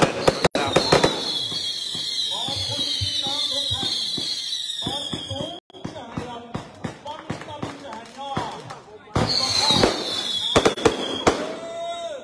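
Rockets whistle shrilly as they shoot into the sky.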